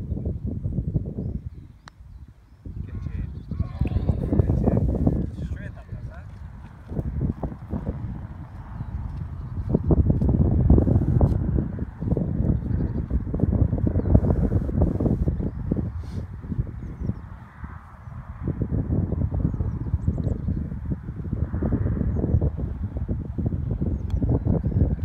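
A putter taps a golf ball on grass.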